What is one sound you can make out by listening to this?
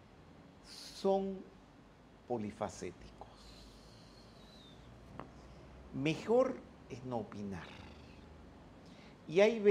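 An elderly man speaks calmly into a microphone close by, in short phrases with pauses.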